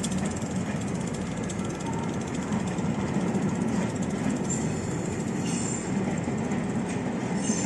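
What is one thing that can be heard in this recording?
Metal wheels squeal and screech on the tracks.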